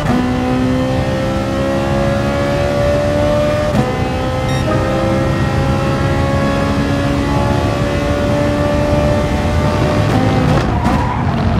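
A racing car engine roars steadily, its pitch slowly rising as it speeds up.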